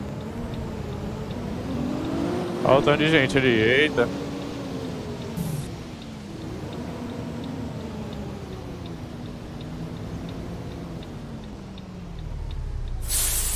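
A bus engine hums and rises and falls in pitch as the bus drives.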